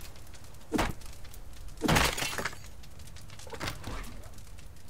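A pickaxe strikes a wooden crate with heavy thuds.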